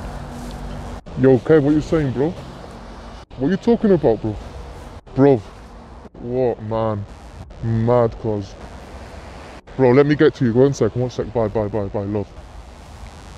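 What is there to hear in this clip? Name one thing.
A man speaks up close in a lively way, with short pauses.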